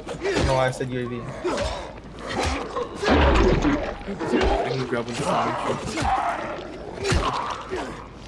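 Heavy blows thud and squelch into flesh, again and again.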